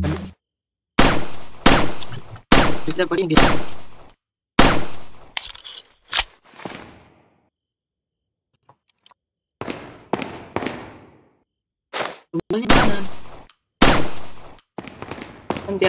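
A handgun fires sharp, echoing shots, one after another.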